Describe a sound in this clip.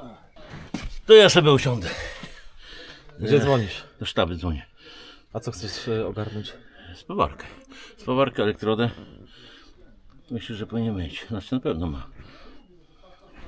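A middle-aged man talks calmly up close.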